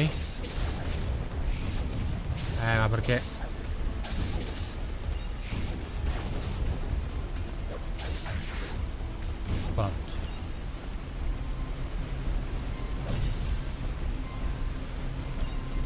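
A young man talks steadily into a close microphone.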